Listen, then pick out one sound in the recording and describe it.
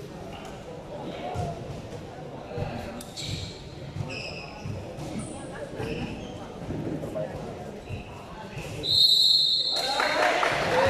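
Young men talk and chatter in a group nearby, in a large echoing hall.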